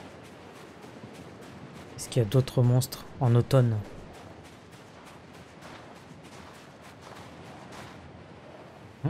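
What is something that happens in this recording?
Footsteps run quickly over sandy ground.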